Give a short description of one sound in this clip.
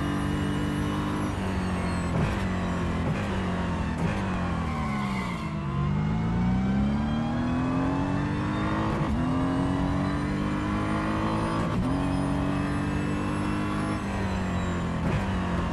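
A racing car engine roars loudly, dropping in pitch as it slows, then revving up again through quick gear changes.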